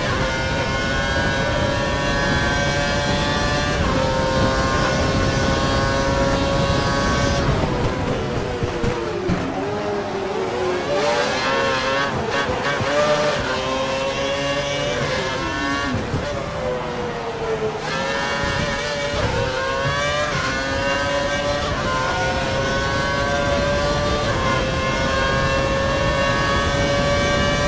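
A racing car engine screams at high revs, rising through the gears and dropping as it brakes into corners.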